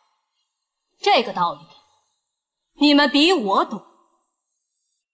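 A woman speaks in short, emotional bursts, close by.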